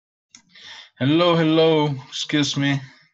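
A man speaks clearly over an online call.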